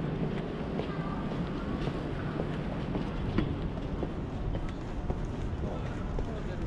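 A low murmur of city traffic hums outdoors.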